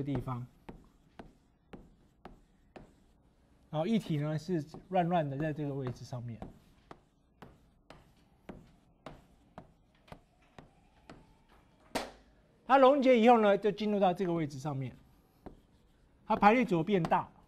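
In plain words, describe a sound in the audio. Chalk taps and clicks against a board in quick strokes.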